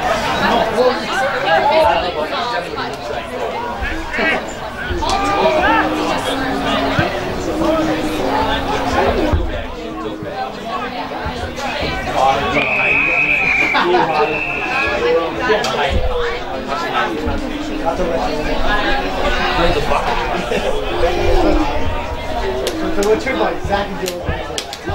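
Spectators close by chatter and call out across the outdoor ground.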